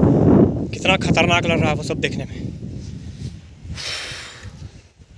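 Wind gusts outdoors, buffeting the microphone.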